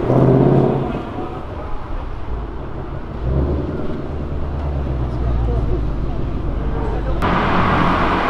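A sports car engine burbles low as the car drives off down the street.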